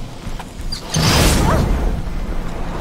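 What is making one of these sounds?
A burst of magic whooshes loudly.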